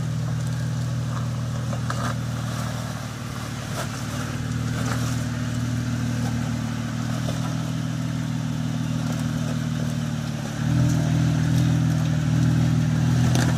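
An engine idles low and rumbles, then revs louder.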